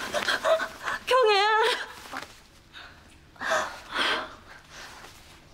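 A woman sobs and cries close by.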